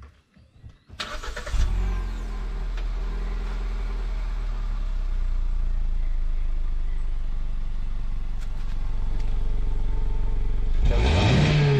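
A car engine idles with a steady low rumble from the exhaust.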